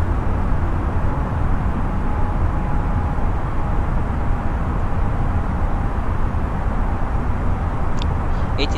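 A jet engine drones in a steady low rumble.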